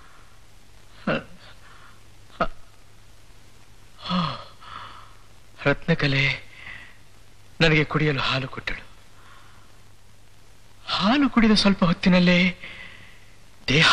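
A man sings expressively close by.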